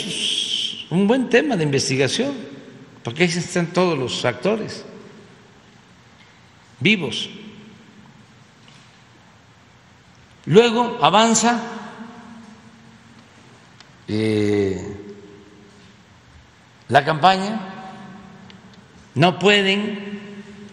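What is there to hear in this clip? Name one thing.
An elderly man speaks slowly into a microphone in a reverberant hall, with long pauses.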